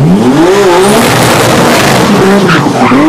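Tyres squeal on pavement.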